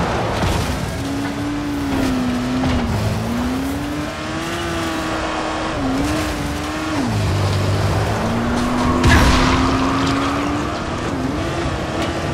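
An engine revs up and down as a vehicle drives over rough ground.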